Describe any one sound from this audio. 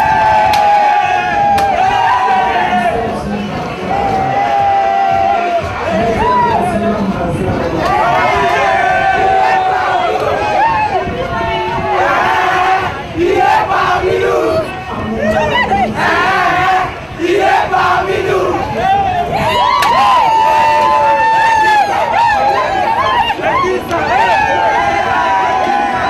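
Women cheer and shout with excitement.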